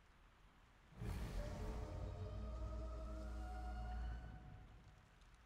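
A young woman groans and gasps in pain.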